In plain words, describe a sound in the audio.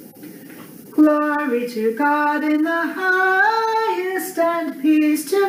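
A woman sings a hymn alone, heard through a computer microphone.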